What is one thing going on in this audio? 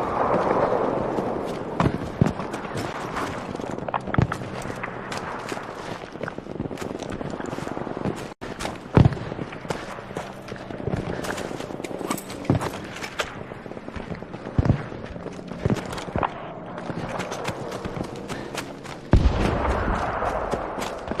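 Footsteps crunch quickly over dirt and leaves.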